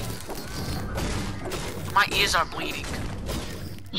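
A pickaxe strikes wood with sharp thuds.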